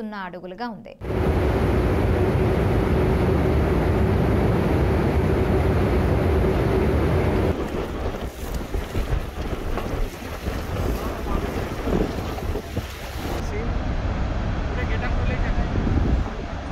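Water roars loudly as it pours through dam floodgates.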